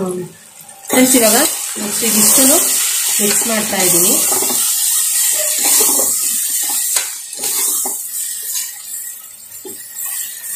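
Thick food squelches as a spoon stirs it.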